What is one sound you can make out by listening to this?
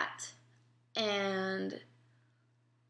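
A young woman makes a short, drawn-out sound close by.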